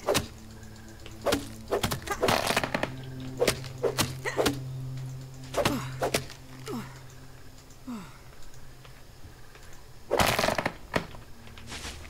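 A tool chops at a thick grass stalk.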